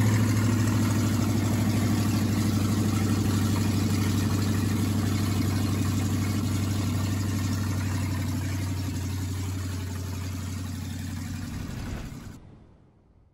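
An engine idles with a steady, rumbling throb.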